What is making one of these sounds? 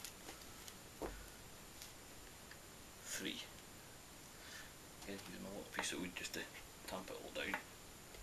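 Wooden sticks knock and click together.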